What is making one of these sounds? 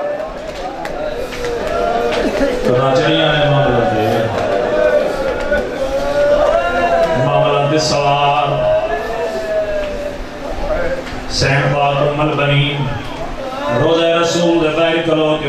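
A young man recites in a chanting voice through a microphone, heard in a hall with echo.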